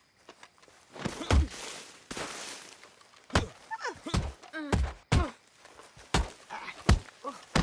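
Heavy blows land with dull thuds during a scuffle.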